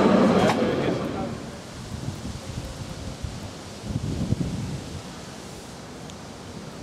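Wind blows against the microphone outdoors.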